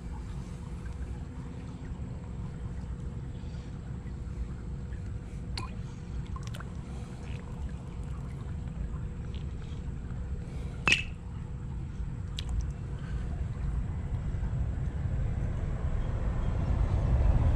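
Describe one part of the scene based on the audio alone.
A gloved hand splashes and stirs in shallow water.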